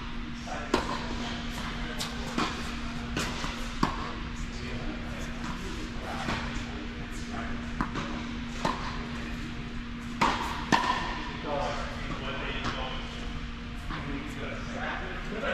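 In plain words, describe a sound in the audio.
Tennis balls pop off rackets again and again, echoing in a large hall.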